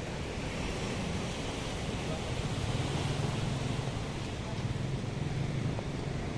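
Surf rolls up onto a beach.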